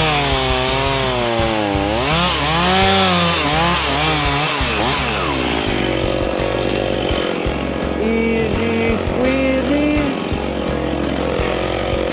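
A chainsaw engine idles close by with a steady low rumble.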